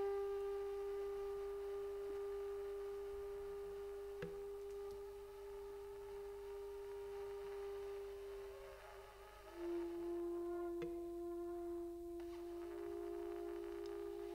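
Saxophones play long, held notes.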